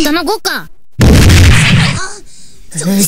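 A hard kick lands with a heavy thud.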